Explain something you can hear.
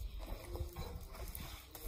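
Water pours from a watering can onto soil.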